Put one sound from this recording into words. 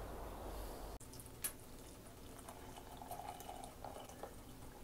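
Water pours from a kettle into a mug.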